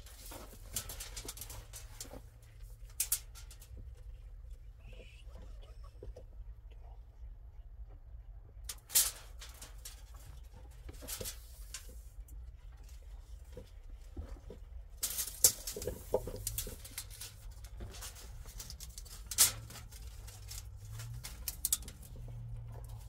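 A plastic hose rustles and scrapes against a wall.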